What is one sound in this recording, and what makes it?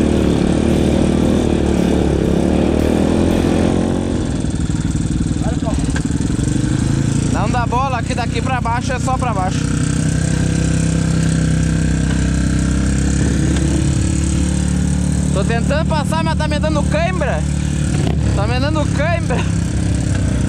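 A dirt bike engine rumbles steadily close by.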